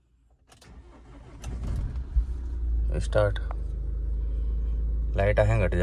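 A car engine idles with a low hum.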